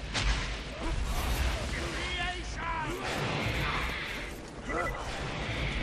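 A gun fires shots in rapid bursts.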